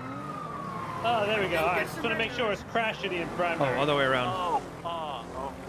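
Police sirens wail loudly close by.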